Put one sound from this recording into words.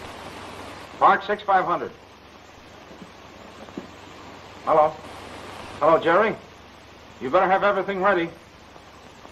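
A man talks into a telephone in short phrases.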